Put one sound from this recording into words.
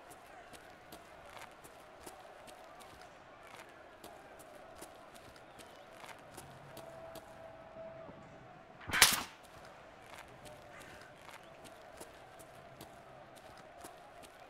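Footsteps tread steadily on hard ground.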